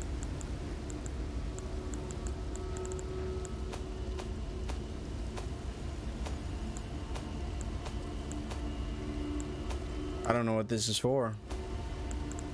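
Soft menu clicks tick as items are scrolled through.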